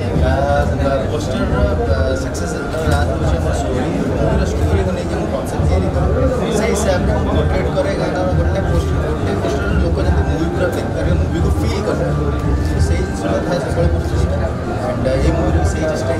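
A man answers, speaking calmly into a microphone.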